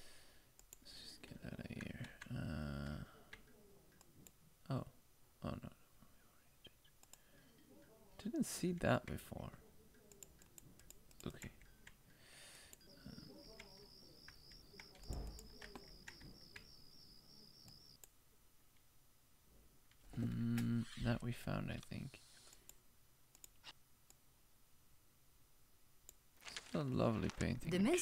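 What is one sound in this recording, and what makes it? A young man talks casually into a microphone, close up.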